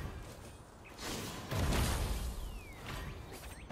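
A shimmering magical whoosh swells and bursts.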